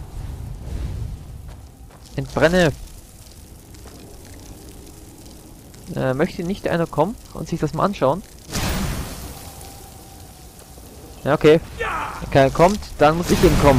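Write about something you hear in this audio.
A fire spell roars in bursts.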